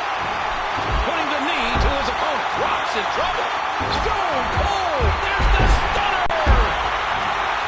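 Heavy bodies thud hard onto a wrestling mat.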